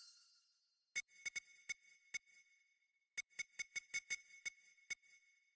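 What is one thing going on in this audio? Short electronic beeps click in quick bursts.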